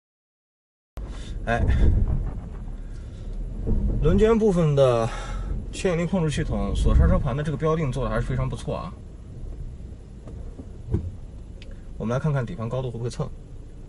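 A car engine rumbles low.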